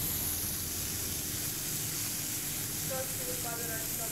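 Metal tongs clink against a frying pan as shrimp are turned.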